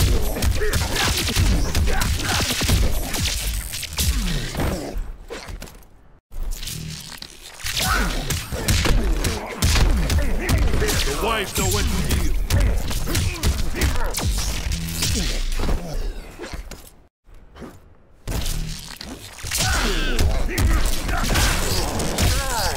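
Electricity crackles and bursts sharply.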